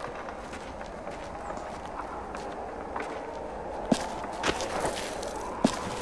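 Footsteps crunch on a forest path.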